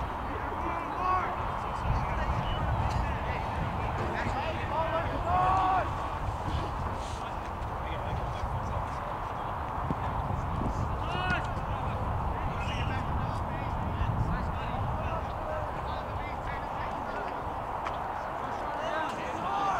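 Young men shout calls across an open field.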